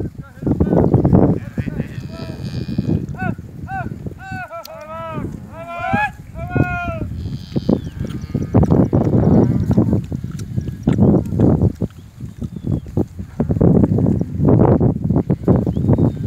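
Cattle hooves thud and rustle through dry grass.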